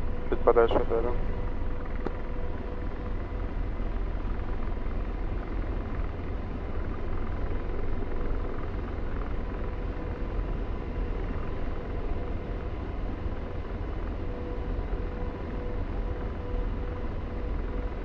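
A jet engine drones with a steady low rumble.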